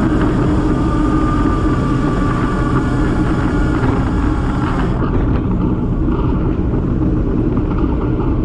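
Wind roars steadily outdoors.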